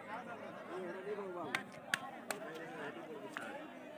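A football is kicked with a thud.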